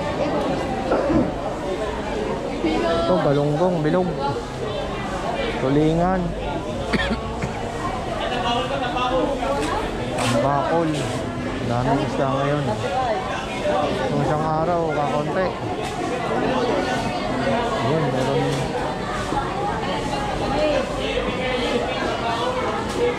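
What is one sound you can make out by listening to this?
A crowd of men and women chatter throughout, close by and all around.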